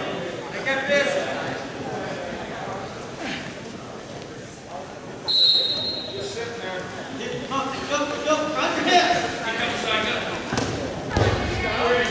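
Wrestlers thump and scuffle on a mat.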